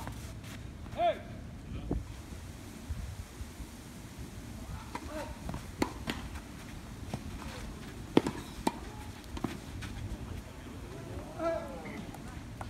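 Tennis shoes squeak on the hard court.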